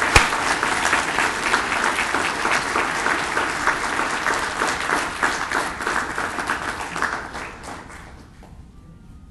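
An audience applauds loudly in a large room, then the clapping fades away.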